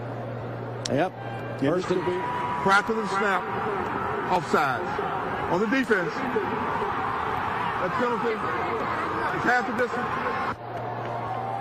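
A man announces calmly over a stadium loudspeaker, echoing across the field.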